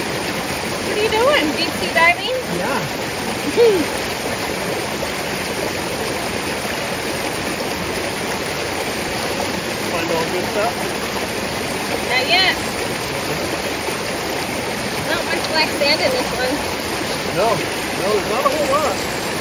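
A shallow stream flows and gurgles over rocks.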